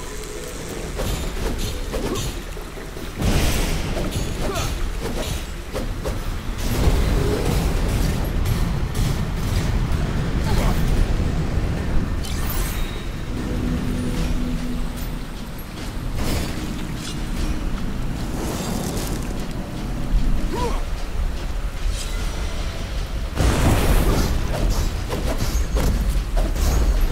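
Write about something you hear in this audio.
Blades clash and strike with sharp hits.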